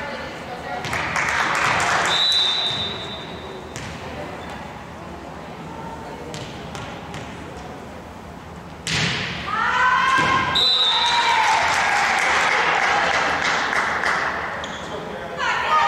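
Spectators cheer and clap in a large echoing gym.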